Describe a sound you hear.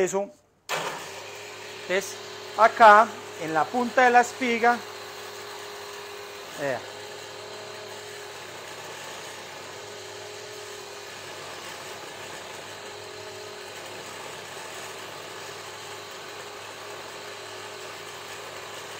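A power drill hums steadily.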